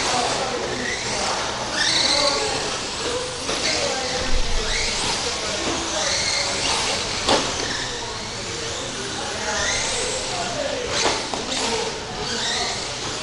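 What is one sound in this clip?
Small electric motors whine and rise and fall in pitch as radio-controlled cars race past.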